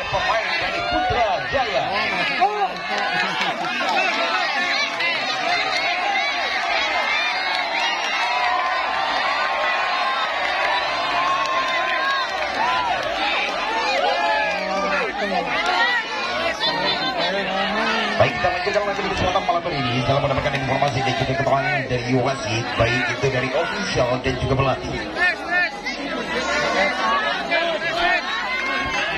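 A large outdoor crowd chatters and cheers loudly.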